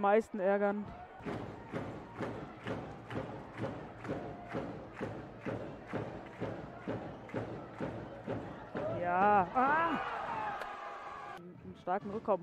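A crowd claps in a steady rhythm in a large echoing hall.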